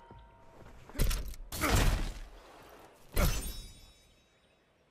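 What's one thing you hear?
A loud rushing whoosh sounds as a game character is launched into the air.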